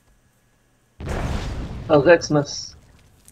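An explosion booms with a rumbling roar.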